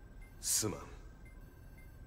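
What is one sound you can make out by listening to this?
A young man speaks quietly.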